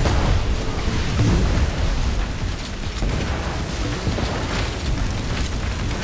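A boat engine roars steadily across water.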